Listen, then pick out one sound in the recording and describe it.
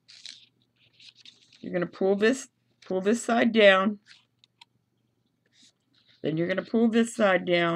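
Paper crinkles softly as it is folded and creased.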